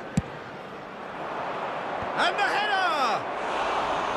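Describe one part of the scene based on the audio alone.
A stadium crowd swells into a loud roar.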